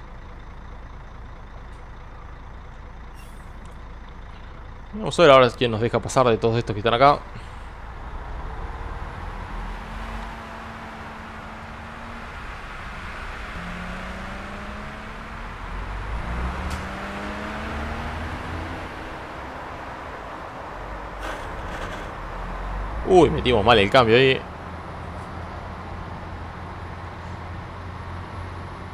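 A bus engine hums low and revs up as the bus pulls away.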